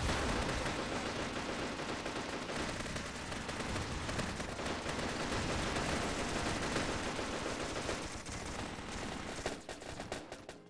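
Rapid gunfire crackles and pops.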